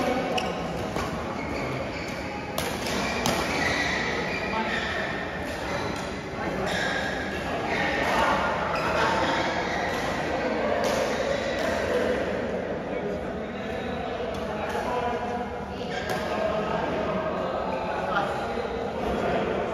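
Shoes squeak on a hard court floor in a large echoing hall.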